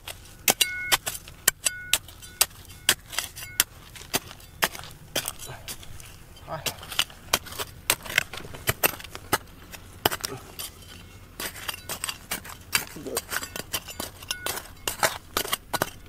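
Loose soil and pebbles trickle and patter down.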